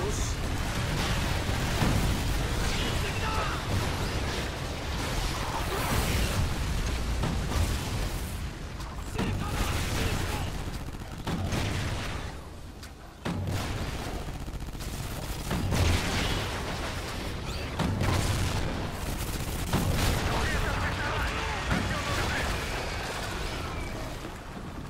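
A gun fires in loud repeated bursts.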